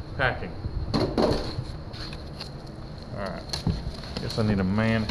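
Cardboard scrapes and thuds.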